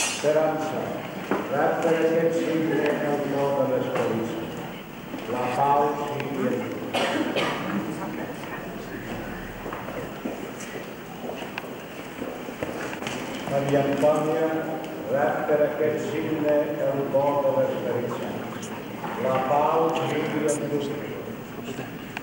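A man speaks calmly, close by, in a reverberant hall.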